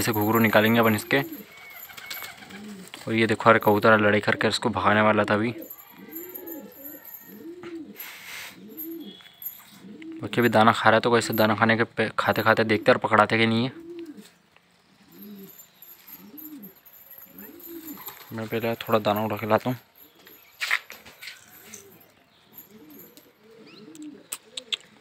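Pigeons coo softly and repeatedly close by.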